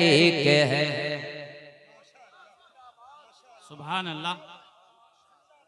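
A young man chants loudly into a microphone, heard through loudspeakers outdoors.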